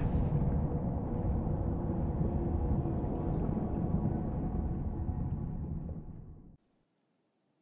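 Water churns with a low, muffled rumble underwater.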